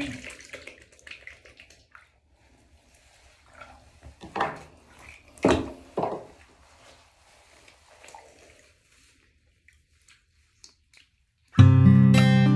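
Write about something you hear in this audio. Water splashes softly as a woman rubs her skin.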